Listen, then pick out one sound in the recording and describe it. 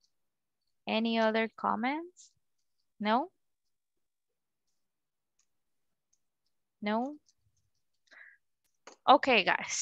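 A woman speaks through an online call, slowly and clearly, as if teaching, with pauses.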